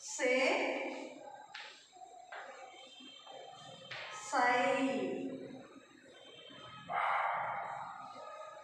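A woman reads out syllables in a clear, drawn-out voice.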